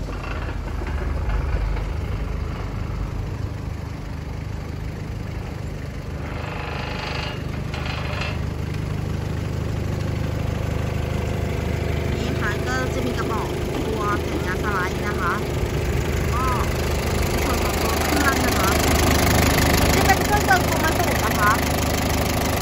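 A forklift's diesel engine rumbles steadily at idle.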